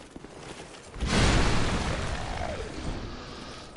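A heavy weapon swings through the air with a loud whoosh and impact.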